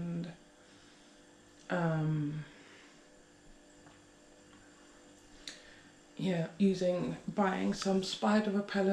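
A young woman speaks close by, in a casual, animated way.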